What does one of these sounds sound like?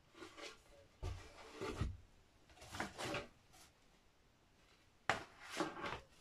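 Cardboard rustles and knocks as a box is handled.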